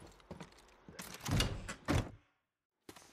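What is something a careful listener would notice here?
A wooden door opens with a knock and a creak.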